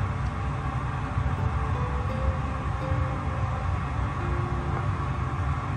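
A middle-aged man chews food with his mouth close by.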